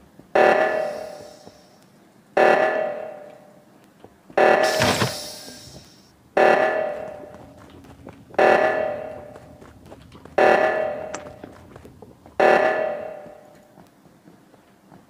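An alarm tone rings out every two seconds, each ring fading away.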